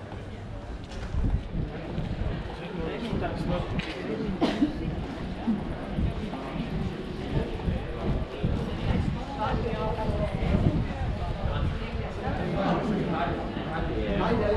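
Adult women chat nearby outdoors.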